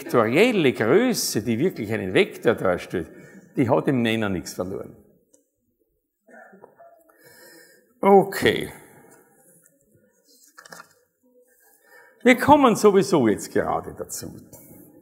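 A middle-aged man speaks calmly and with animation through a close microphone.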